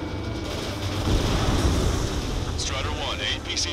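An explosion booms on the ground.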